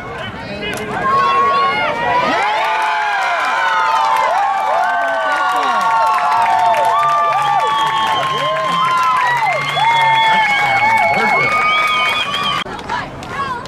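A crowd cheers loudly from the stands.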